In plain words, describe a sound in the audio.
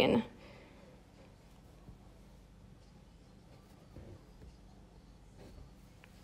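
Fingers rustle softly against stretched cloth.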